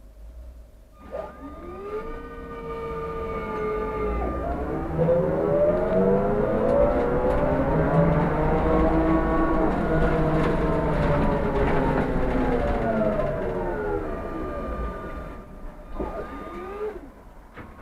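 A bus motor whines, rising in pitch as the bus speeds up and falling as it slows.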